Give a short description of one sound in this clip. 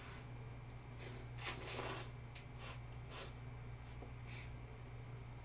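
A young woman slurps noodles loudly up close.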